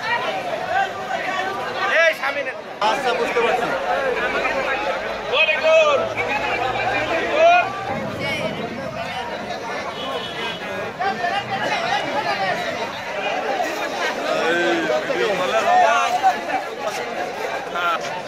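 A large crowd of men and women chatter outdoors.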